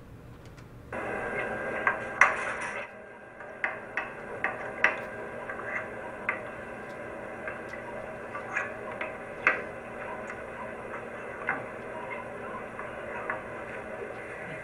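Wooden beads click and knock on pegs, heard through a loudspeaker.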